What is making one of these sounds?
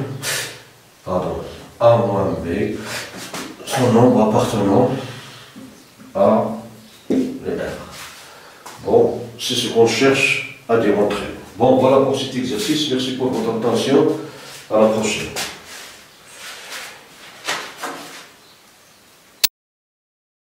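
A man lectures calmly, heard close by.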